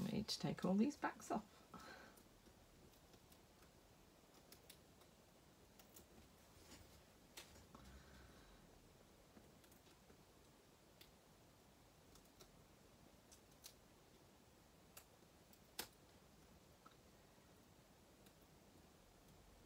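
Clear plastic stamps crinkle and tap softly as hands peel them apart.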